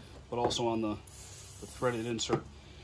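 An aerosol can hisses as it sprays.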